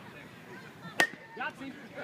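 A softball bat cracks against a ball outdoors.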